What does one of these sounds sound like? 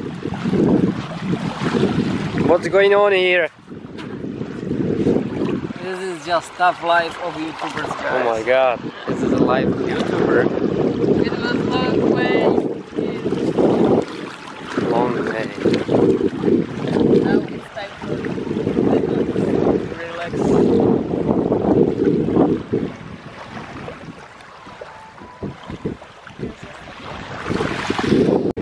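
Small waves lap and wash over the sand at the water's edge.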